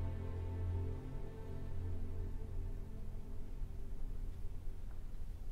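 An orchestra holds a soft, low chord in a large hall that slowly fades into silence.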